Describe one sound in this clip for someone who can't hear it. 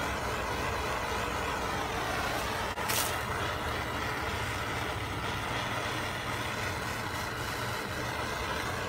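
A propane blowtorch roars steadily.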